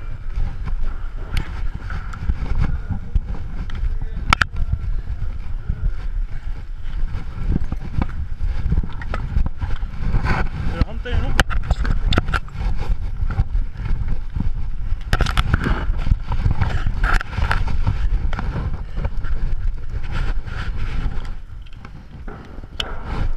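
Straps and buckles of breathing gear rustle and clatter close by.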